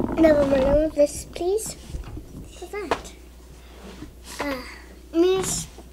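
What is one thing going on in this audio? Plastic toy pieces click on a wooden table.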